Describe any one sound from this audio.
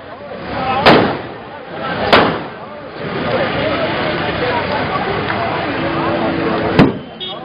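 A crowd of men shouts and chants outdoors.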